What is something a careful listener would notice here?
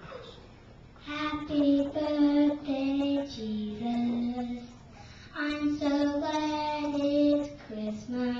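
A young girl sings through a microphone.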